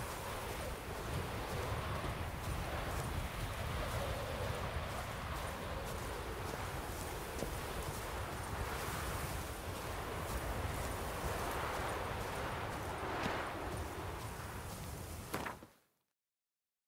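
Footsteps rustle through tall grass and brush.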